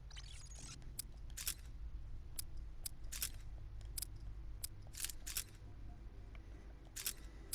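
Short, sharp menu clicks tick several times.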